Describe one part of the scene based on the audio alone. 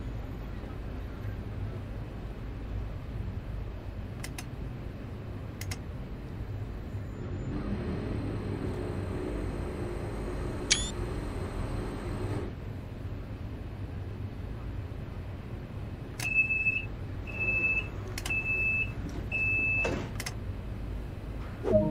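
A train's motor hums low and steady.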